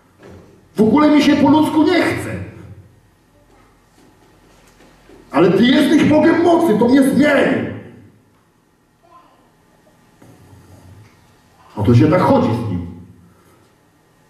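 A man speaks loudly and with animation through a microphone in a large echoing hall, in short bursts with pauses.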